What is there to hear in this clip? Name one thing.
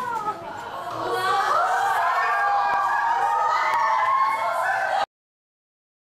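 Several young women laugh and squeal together.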